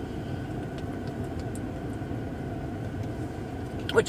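A woman gulps water from a plastic bottle.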